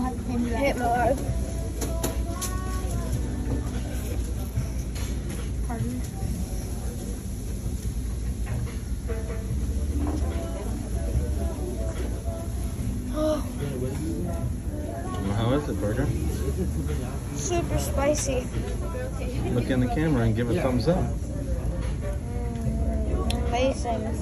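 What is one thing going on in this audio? Diners chatter in the background of a busy room.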